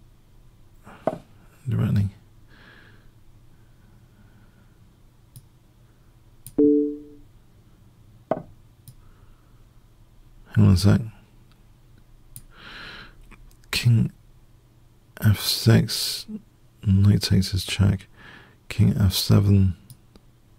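A middle-aged man talks in short bursts into a close microphone, casually.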